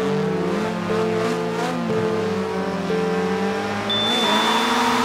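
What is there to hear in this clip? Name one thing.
Racing car engines idle and rev loudly.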